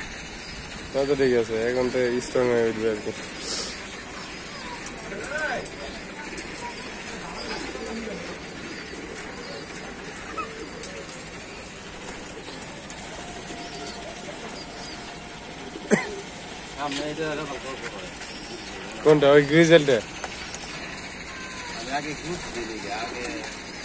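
Pigeons coo and warble close by.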